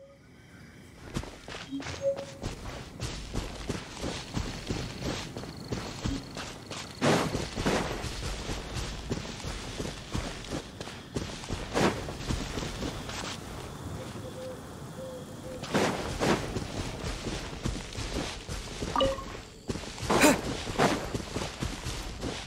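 Quick footsteps swish through grass.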